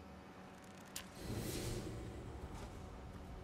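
A large sword swishes through the air.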